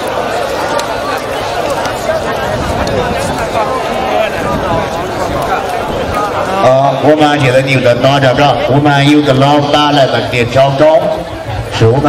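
A crowd of men chatter and shout outdoors.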